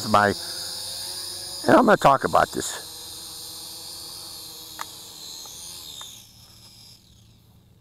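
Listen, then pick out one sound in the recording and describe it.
A small drone's rotors buzz with a high whine, then wind down and stop.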